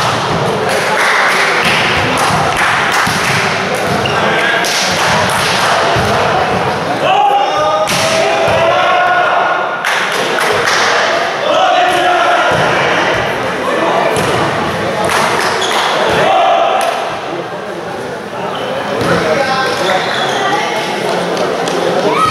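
Many young men shout and chatter loudly nearby in a large echoing hall.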